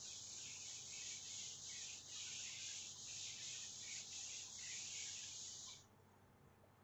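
A cloth rubs briskly against a whiteboard with a steady scrubbing hiss.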